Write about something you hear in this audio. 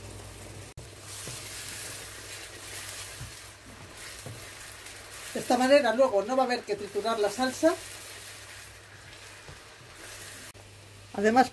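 A spatula scrapes and stirs thick food in a frying pan.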